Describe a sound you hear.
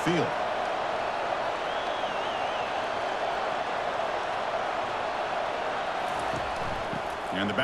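A large crowd murmurs and roars steadily.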